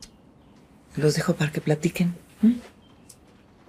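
A middle-aged woman speaks softly and closely.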